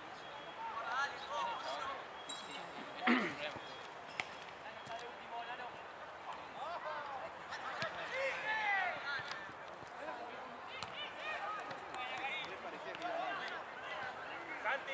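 Young men shout and call out across an open outdoor pitch.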